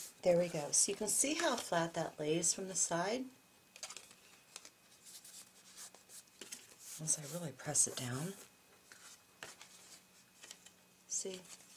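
Stiff paper rustles and taps as a card is handled.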